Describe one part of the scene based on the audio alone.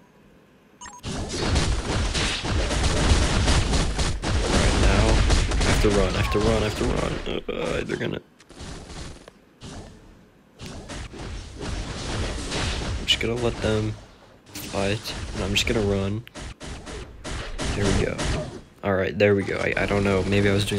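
Game fight sounds of blasts, slashes and impacts play loudly.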